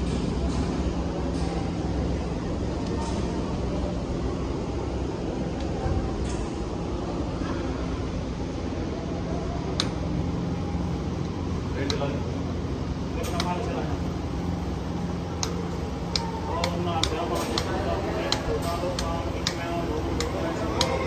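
A treadmill motor hums steadily.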